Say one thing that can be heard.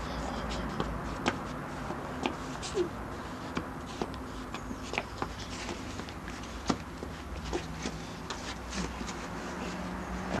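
A toddler's shoes tap and scuff on paving stones.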